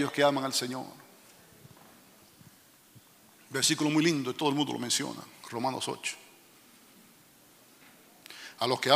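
A middle-aged man speaks with animation into a microphone, with pauses between phrases.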